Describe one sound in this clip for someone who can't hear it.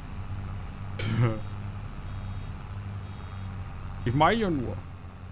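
A man speaks briefly into a microphone with animation.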